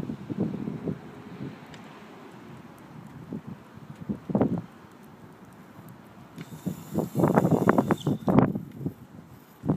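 Skateboard wheels roll and rumble over asphalt.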